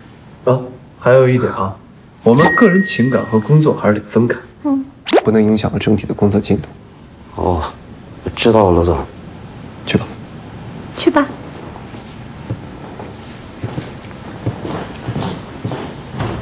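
A young woman speaks lightly.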